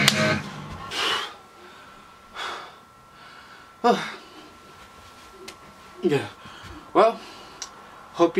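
A young man speaks in short, animated bursts close by.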